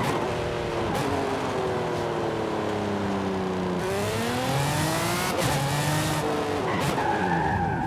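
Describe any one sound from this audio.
A racing car engine roars, rising and falling in pitch as it shifts gears.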